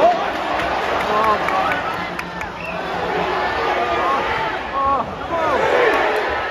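Fans nearby shout excitedly.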